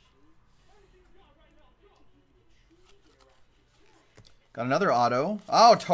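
Trading cards rustle as they are flipped through by hand.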